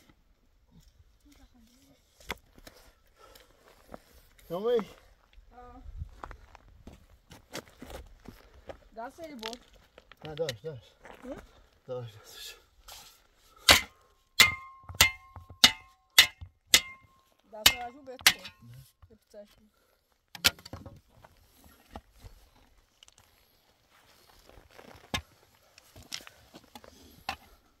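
Soil and stones scrape and rustle as they are dug.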